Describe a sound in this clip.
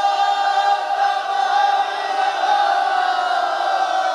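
A crowd of men cheers.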